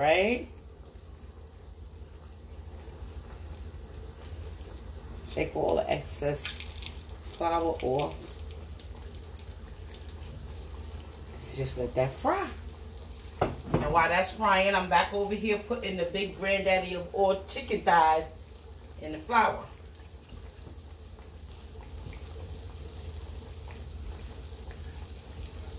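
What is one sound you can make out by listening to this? Hot oil sizzles and bubbles steadily in a pan.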